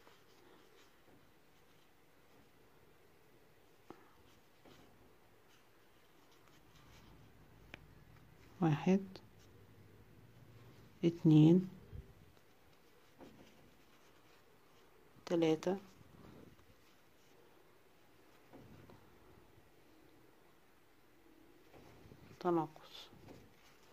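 Yarn rustles softly as a hook pulls it through stitches.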